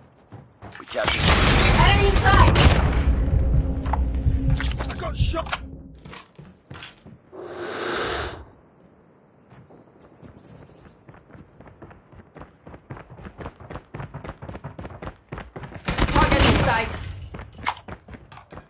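An automatic rifle fires in bursts.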